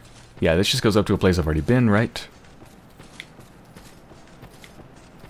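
Armored footsteps run over hard ground.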